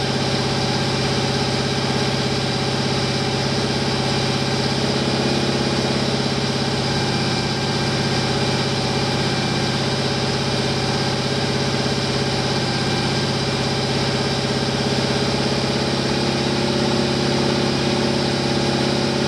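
A big engine idles loudly with a deep, rough, steady rumble.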